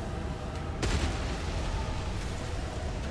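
Stone rubble crashes and scatters.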